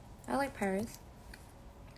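A young woman speaks two short words close to a microphone, in a high voice.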